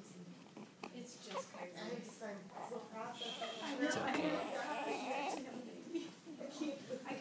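A newborn baby fusses and cries close by.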